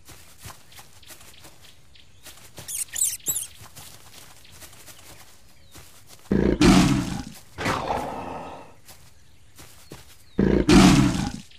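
Soft paw steps patter on dirt.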